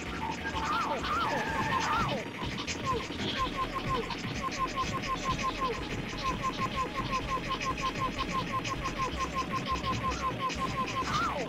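Rapid gunfire from a video game rattles on and on.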